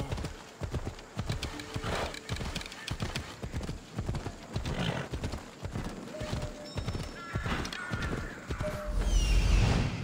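A horse's hooves clop quickly on hard ground.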